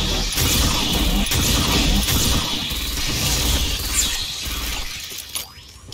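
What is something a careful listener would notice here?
Rapid gunfire rattles and roars.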